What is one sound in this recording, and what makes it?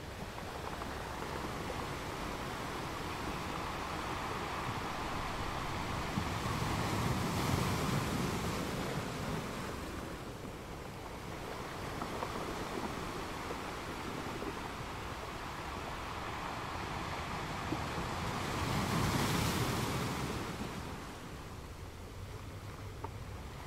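Water rushes and hisses steadily between rocks.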